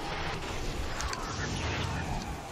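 A rocket launches with a whoosh.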